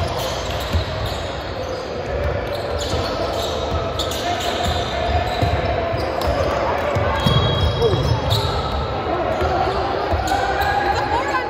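A crowd of young people chatter in the background.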